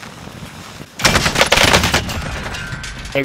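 A rifle fires a burst of loud shots.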